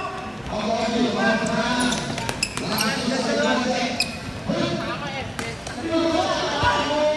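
Young men shout and call out in a large echoing hall.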